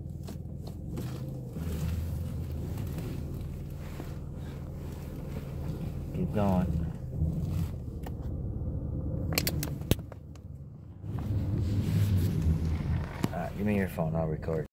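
A car engine hums, heard from inside the car.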